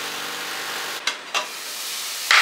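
A glass lid clinks onto a pan.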